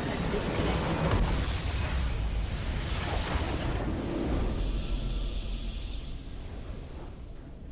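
A large crystal shatters in a booming explosion.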